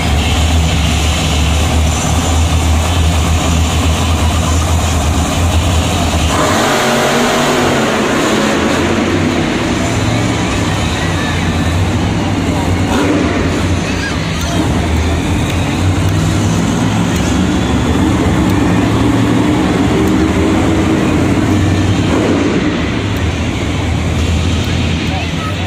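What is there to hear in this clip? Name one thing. Monster truck engines rumble and roar loudly.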